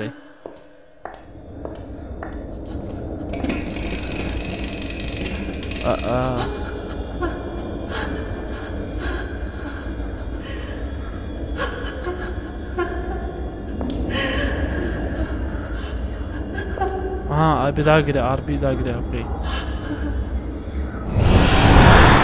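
A lantern hisses steadily as it puffs out smoke.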